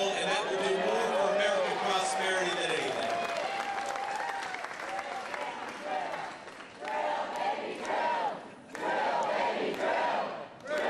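A large crowd cheers and claps.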